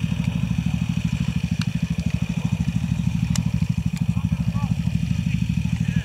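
Quad bike engines idle with a low, steady throbbing rumble close by.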